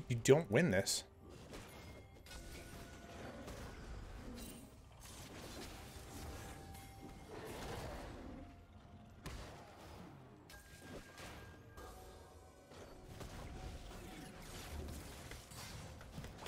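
Spell and combat sound effects from a video game play.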